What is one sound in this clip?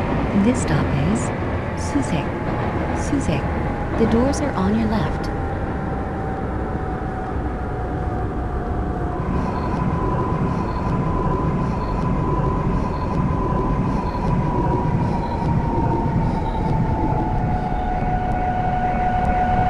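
A train rumbles steadily along the tracks as it slows down.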